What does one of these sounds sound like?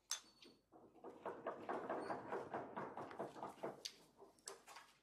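Students murmur quietly among themselves.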